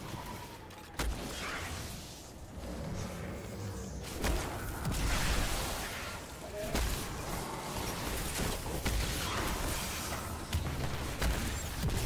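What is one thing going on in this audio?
Energy blasts and explosions crackle loudly.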